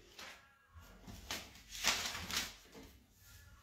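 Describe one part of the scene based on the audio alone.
Pages of a music book rustle as they turn.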